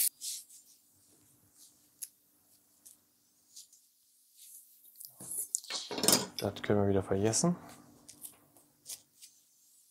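A knife cuts on a wooden board with soft taps.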